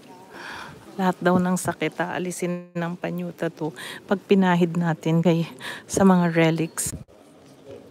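A woman speaks close by in a lively voice.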